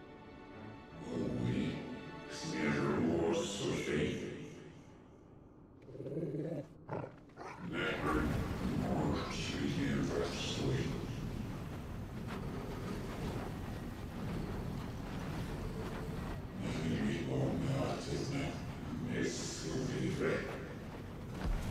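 A man speaks slowly and gravely.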